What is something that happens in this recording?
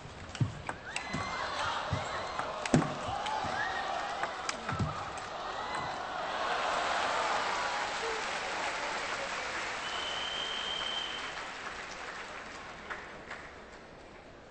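A crowd cheers and applauds loudly in a large echoing hall.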